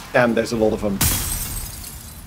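A magic spell bursts with a sharp rushing hiss.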